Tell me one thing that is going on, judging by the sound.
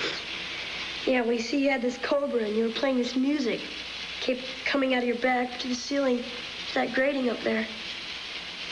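A boy speaks in a hushed, excited voice nearby.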